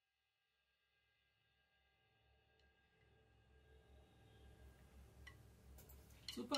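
Cymbals ring and slowly fade away.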